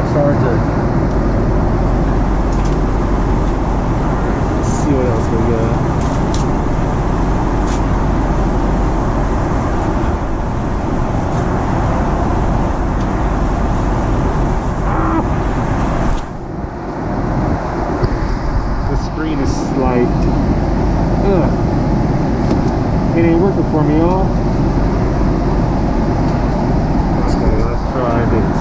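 A plane's engines roar steadily inside the cabin.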